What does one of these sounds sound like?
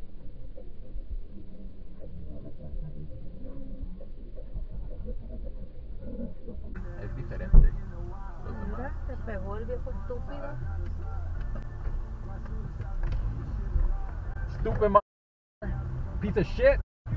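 A car engine rumbles low and steady from inside the car.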